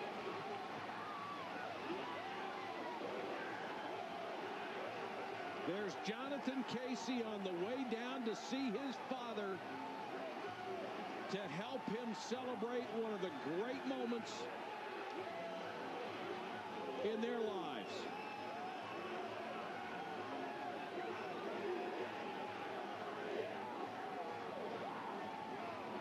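A large crowd cheers and roars in a big outdoor stadium.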